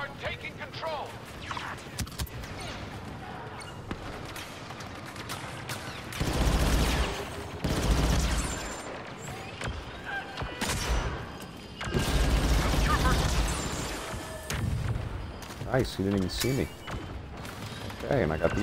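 Blaster rifles fire in rapid bursts of shots.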